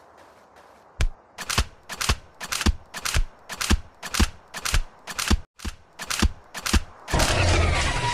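Blows strike a turret in quick succession.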